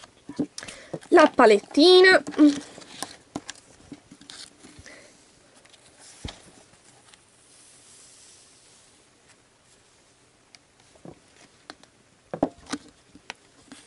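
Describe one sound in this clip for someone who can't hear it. Plastic pieces click and clatter against each other.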